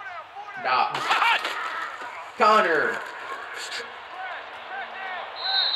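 Football players crash together in a tackle.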